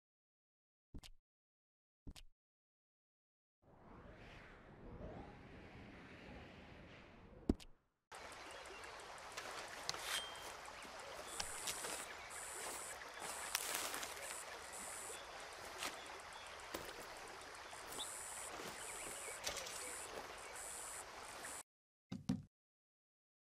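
A soft click sounds several times.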